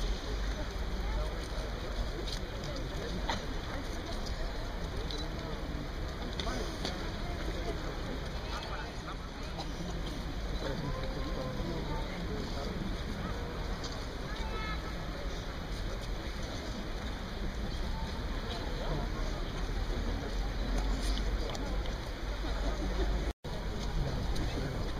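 A large outdoor crowd murmurs and chatters steadily.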